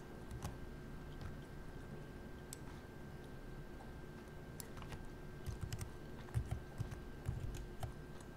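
A cup knocks softly as it is set down and lifted.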